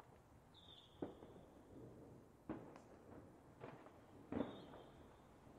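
Fireworks burst with loud booming bangs.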